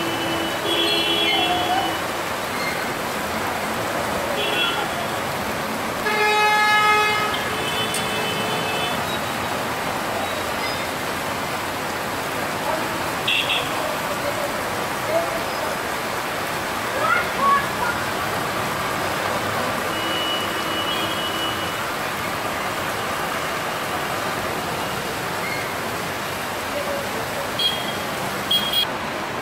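Car horns honk in heavy traffic.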